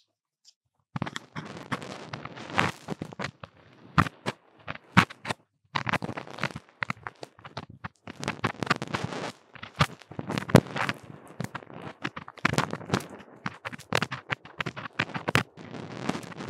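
An ear-cleaning tool scrapes and scratches against a microphone, very close.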